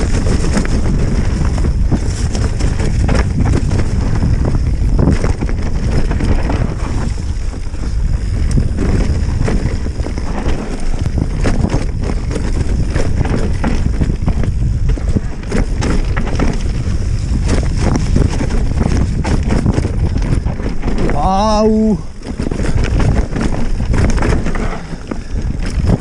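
Bicycle tyres rattle and crunch over a rough dirt trail.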